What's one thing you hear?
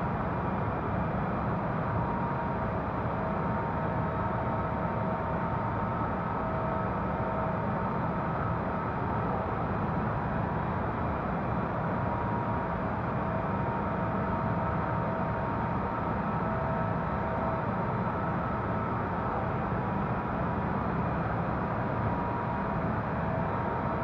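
Jet engines roar steadily with a constant droning hum.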